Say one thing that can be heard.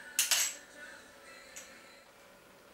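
A quick-release plate clicks free from a tripod head.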